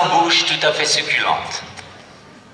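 A woman reads aloud expressively.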